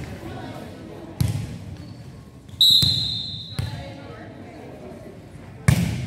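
Players and spectators chatter faintly in a large echoing gym.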